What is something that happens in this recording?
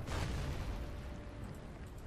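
Distant explosions boom in a battle.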